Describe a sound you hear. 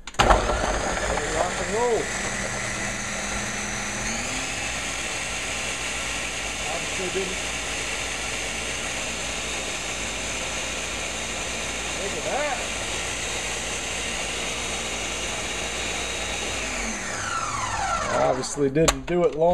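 A blender motor whirs loudly and steadily, then winds down.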